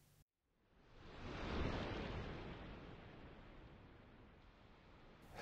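Small waves lap gently on a pebble shore.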